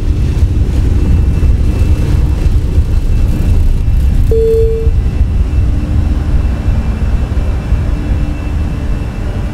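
An airliner's jet engines roar at takeoff thrust.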